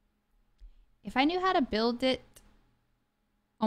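A young woman speaks briefly into a microphone close by.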